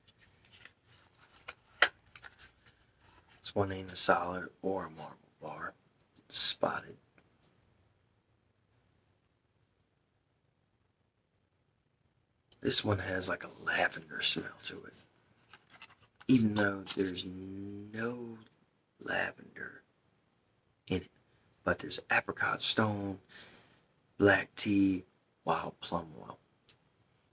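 A man talks softly and close to a microphone.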